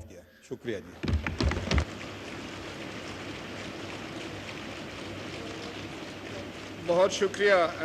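A crowd thumps on desks in applause.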